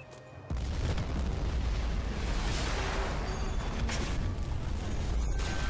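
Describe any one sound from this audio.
A large fire roars with a deep, steady rumble.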